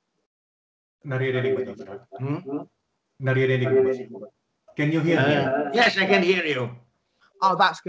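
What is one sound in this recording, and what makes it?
An elderly man speaks calmly over an online call.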